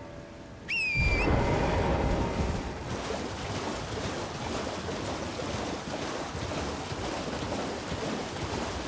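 A horse gallops splashing through shallow water.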